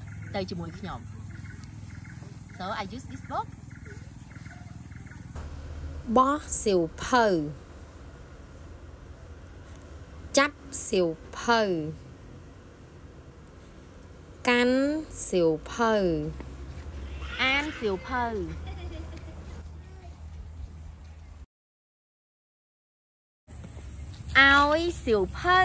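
A young woman speaks clearly and slowly, close to a microphone.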